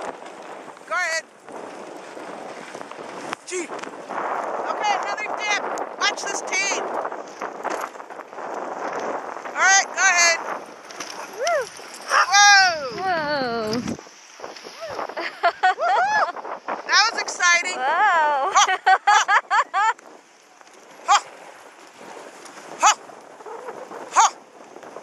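Sled dogs yelp and whine excitedly.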